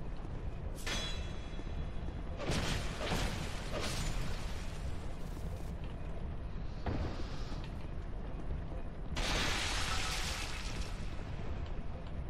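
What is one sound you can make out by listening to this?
Swords clash and strike in a game fight.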